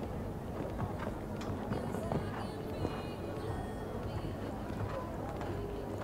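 Hooves thud on soft sand as a horse canters.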